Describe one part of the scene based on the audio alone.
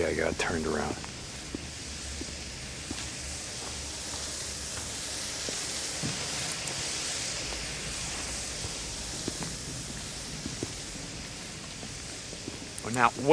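A burning flare hisses steadily.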